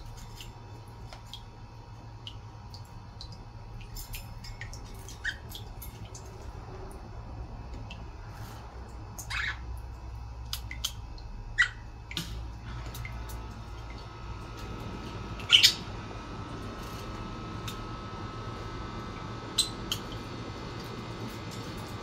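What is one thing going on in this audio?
A budgie chirps and tweets softly at close range.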